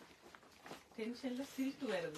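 A middle-aged woman speaks close by.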